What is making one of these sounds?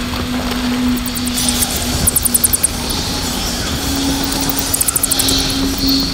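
Footsteps scrape over rocky ground.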